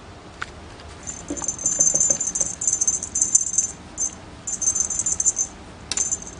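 A toy rustles and jingles as a cat bats at it.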